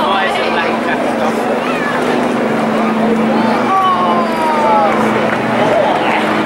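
A propeller plane drones steadily overhead.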